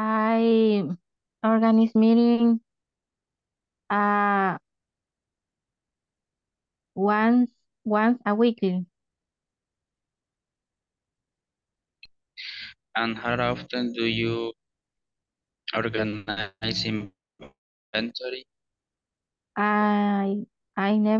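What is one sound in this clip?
A woman speaks through an online call, in short bursts with pauses.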